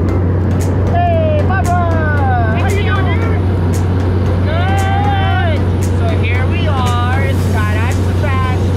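A young woman talks excitedly over the engine noise, close by.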